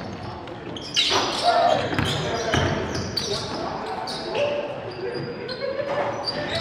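Young men shout to each other in a large echoing gym.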